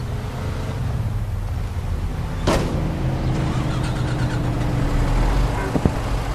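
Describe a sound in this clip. A car engine hums while driving behind a bus.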